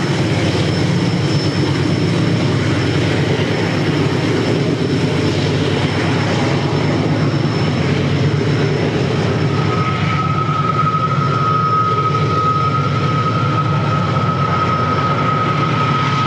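Freight cars clatter along the rails.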